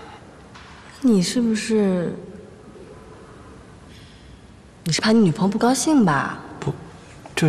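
A young woman speaks in a questioning, teasing tone nearby.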